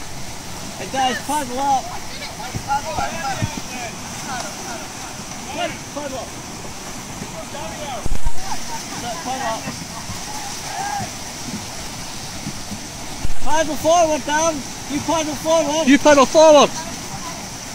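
Young people in a canoe call out and shout excitedly.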